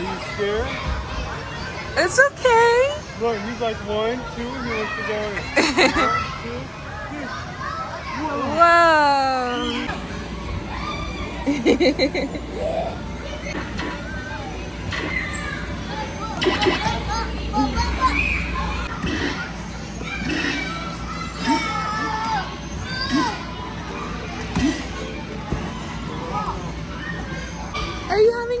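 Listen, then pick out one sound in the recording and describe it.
Young children chatter and squeal close by.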